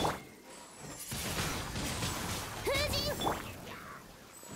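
A magical burst whooshes loudly like a gust of wind.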